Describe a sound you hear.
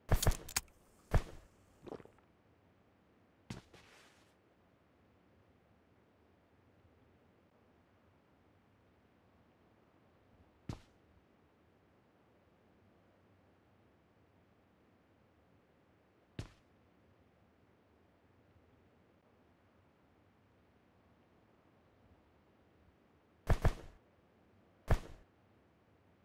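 Short, sharp clicks and bangs from a video game ring out now and then.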